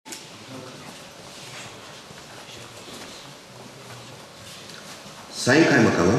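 A middle-aged man speaks calmly through a microphone in an echoing room.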